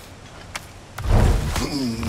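A heavy wooden chest lid thumps and creaks open.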